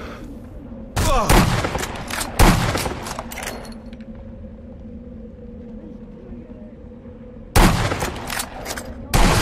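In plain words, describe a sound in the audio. A sniper rifle fires loud, echoing shots.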